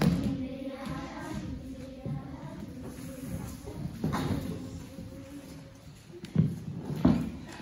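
Young children talk and call out in a large echoing hall.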